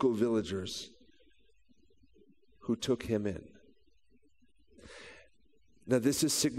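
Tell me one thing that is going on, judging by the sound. A man speaks calmly through a headset microphone, with pauses.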